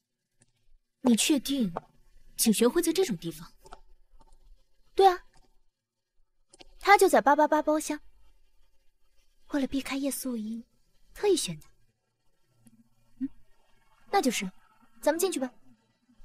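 A young woman speaks calmly and closely.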